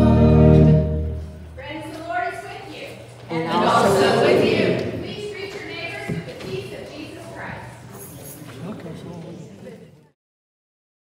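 A congregation of men and women murmur and chat in a large echoing hall.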